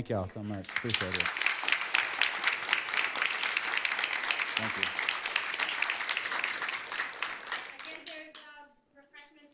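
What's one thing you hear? Hands clap in loud applause that fades out.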